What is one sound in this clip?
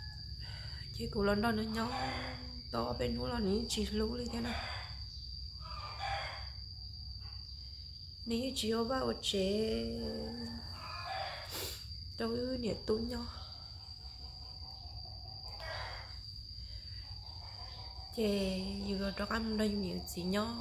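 A middle-aged woman speaks calmly and close to the microphone, with pauses.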